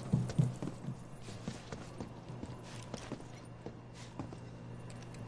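Footsteps thud on a metal walkway.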